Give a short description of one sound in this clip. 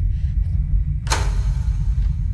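A door latch clicks open sharply.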